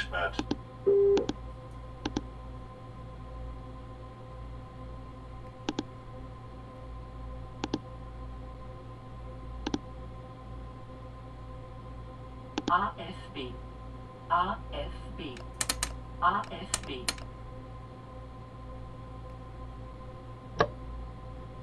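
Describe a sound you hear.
Switches in a train cab click now and then.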